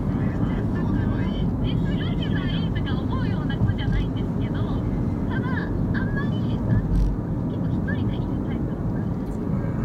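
A truck rumbles close by in the next lane.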